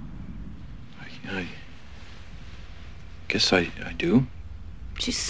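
A man speaks in a low, quiet voice close by.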